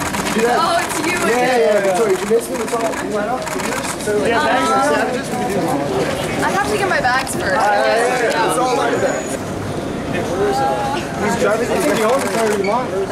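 Several men call out and talk loudly close by.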